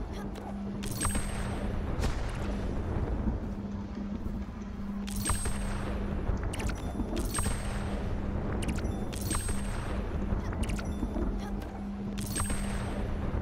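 Thunder cracks and rumbles again and again.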